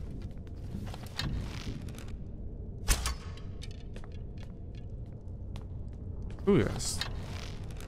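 A bowstring creaks as it is drawn back.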